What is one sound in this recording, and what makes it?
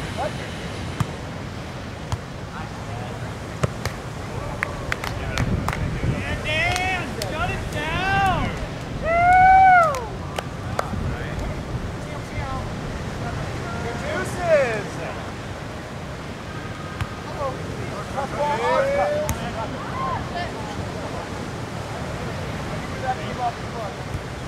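A volleyball is struck with dull slaps.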